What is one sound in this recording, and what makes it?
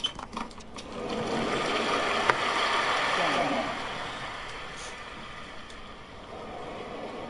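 A crowd applauds loudly, then the applause fades.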